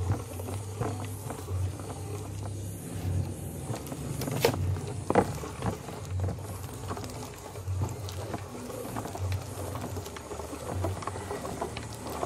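A meat grinder hums steadily with a low, pulsing drone.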